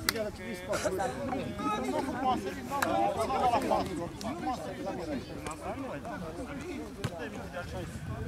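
Several men talk and call out outdoors at close range.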